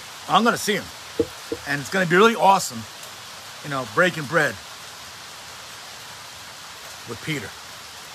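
A middle-aged man speaks calmly and close to the microphone, in short bursts with pauses.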